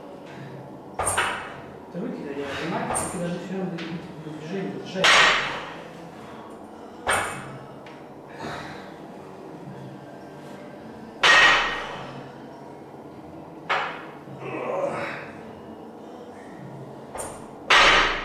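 A heavy barbell clanks down onto a rubber floor mat, over and over.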